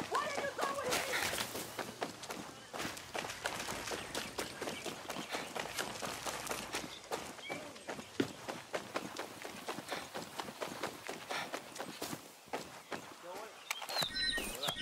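Footsteps crunch steadily on gravel and pavement.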